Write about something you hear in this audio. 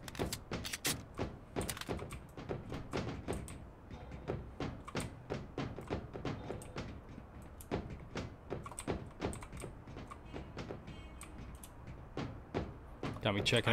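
Footsteps clank quickly and steadily on metal stairs.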